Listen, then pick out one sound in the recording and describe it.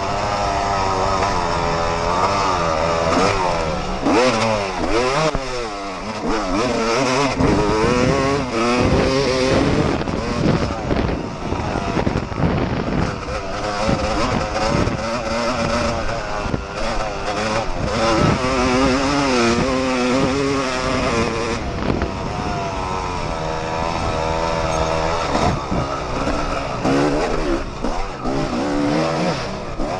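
A dirt bike engine revs up and down loudly and close.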